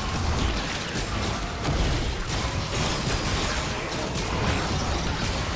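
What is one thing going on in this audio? Game characters' weapons clash and hit.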